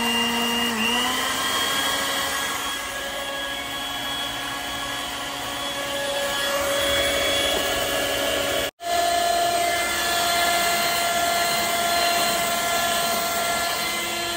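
An electric hand mixer whirs steadily, its beaters whisking in a bowl.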